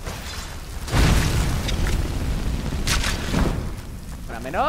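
A fire spell whooshes and roars.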